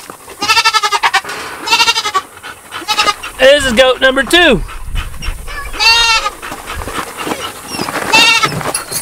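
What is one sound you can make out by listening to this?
A young goat bleats loudly and repeatedly up close.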